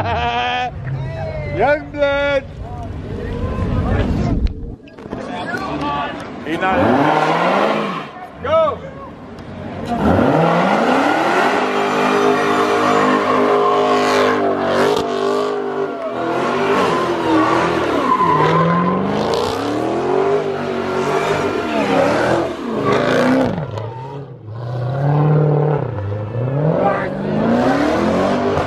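Tyres screech on the road.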